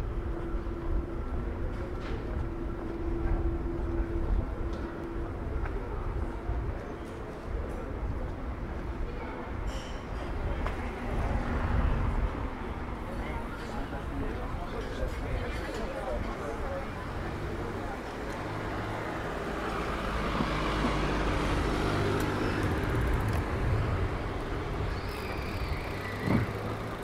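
Outdoor street noise hums steadily with distant traffic.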